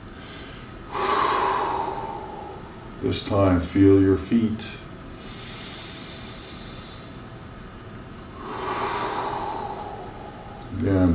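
An older man breathes out audibly during an exercise.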